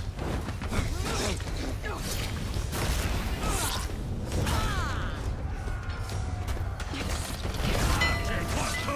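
Swords clash and clang in quick bursts.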